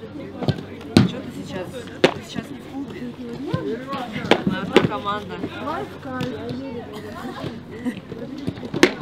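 Young women chat and laugh nearby.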